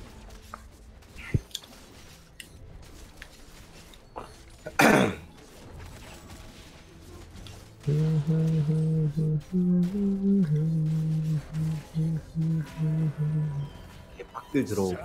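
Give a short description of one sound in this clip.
Fighters in a game clash, with sharp hits and whooshing spell effects.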